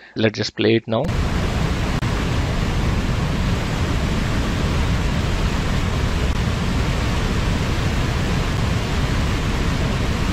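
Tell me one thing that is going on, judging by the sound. A waterfall rushes loudly and steadily.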